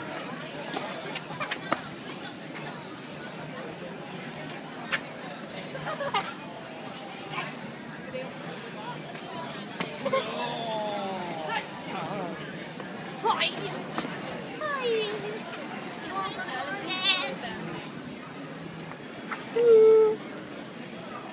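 A boy laughs and squeals close by.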